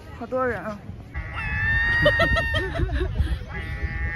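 Seagulls squawk loudly nearby.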